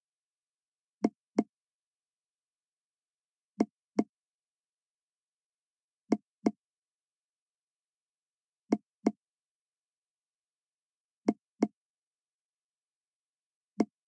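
Soft game pops sound in quick pairs every few seconds as balls drop into tubes.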